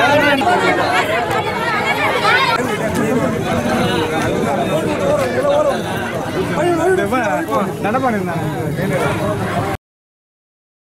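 A crowd of men and women talk loudly all at once outdoors.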